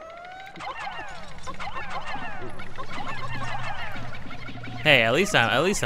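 Many tiny creatures chirp in quick, high, falling squeaks.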